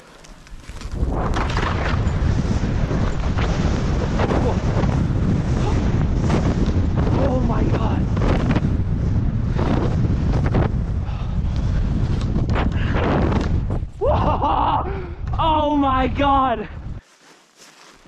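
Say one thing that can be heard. Wind rushes loudly over the microphone at speed.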